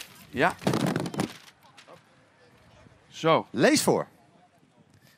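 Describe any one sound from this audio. A young man speaks with excitement into a microphone.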